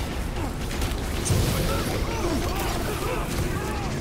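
Sci-fi energy blasters fire.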